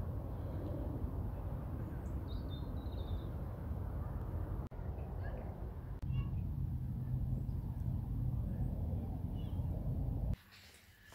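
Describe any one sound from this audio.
Wind rumbles and blows outdoors.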